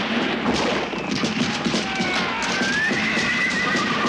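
Horses gallop past with heavy hoofbeats.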